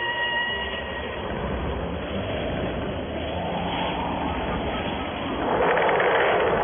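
A sled swishes over snow at speed.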